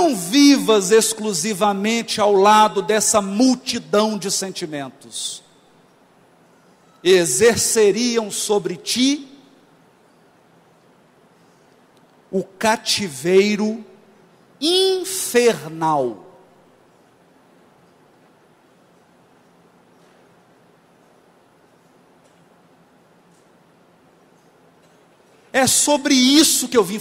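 A man speaks with animation into a microphone, heard through a loudspeaker, pausing between phrases.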